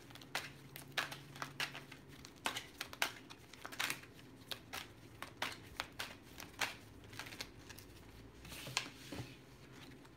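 Small objects click and tap close by.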